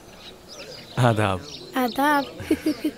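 A young girl laughs close by.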